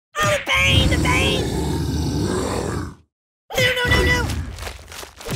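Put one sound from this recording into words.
A cartoon dinosaur roars loudly.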